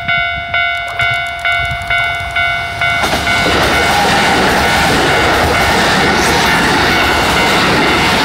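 A train rumbles closer and passes by loudly on the tracks.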